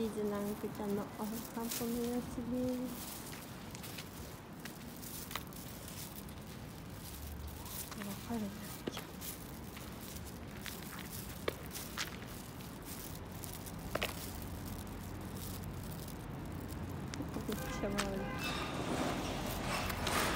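A dog's plastic cone scrapes against rough pavement.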